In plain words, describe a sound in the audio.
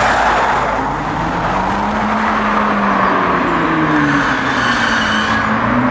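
A sports car drives past, its engine rising and falling in pitch.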